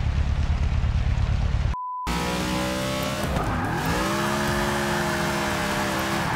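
A car engine roars and revs, dipping and then rising in pitch.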